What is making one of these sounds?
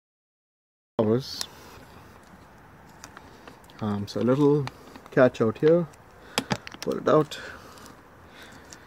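A plastic part clicks and rattles as a hand handles it.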